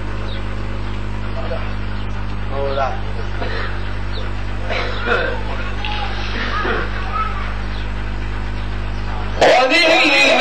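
A man speaks softly and haltingly through a microphone.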